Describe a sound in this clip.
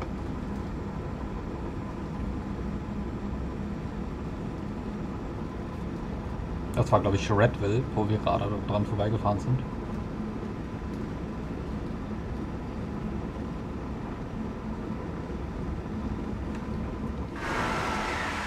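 A train engine rumbles steadily from inside the cab.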